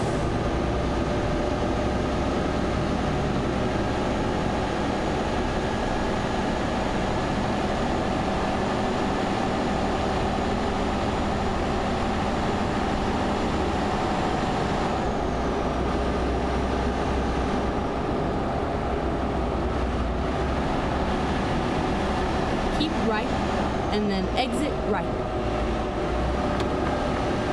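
Tyres roll over the road with a steady rushing noise.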